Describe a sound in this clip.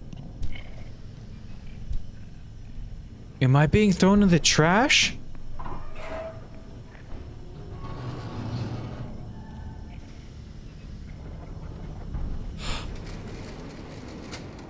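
A man speaks quietly close to a microphone.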